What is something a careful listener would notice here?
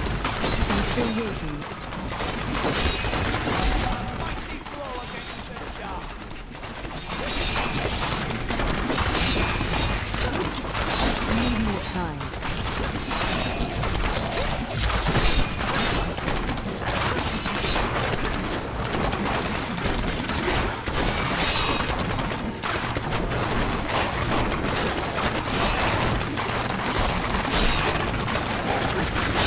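Spells crackle and blast in a fast game fight.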